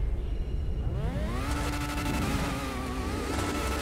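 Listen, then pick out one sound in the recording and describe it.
An open-wheel race car engine revs, its whine rising in pitch.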